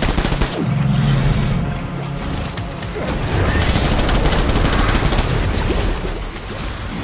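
Gunfire and explosions boom loudly in a battle.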